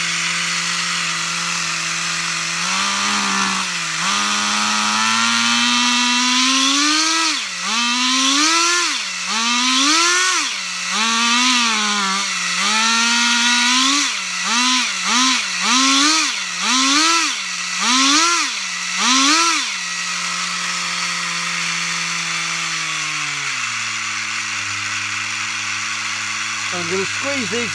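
A small model engine runs loudly close by.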